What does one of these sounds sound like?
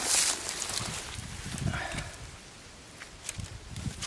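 A knife cuts through a mushroom stem.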